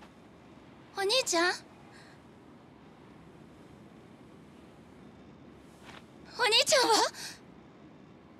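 A young woman speaks anxiously, close by.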